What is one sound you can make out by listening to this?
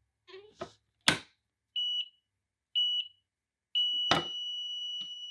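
A heat press handle clunks as it locks down.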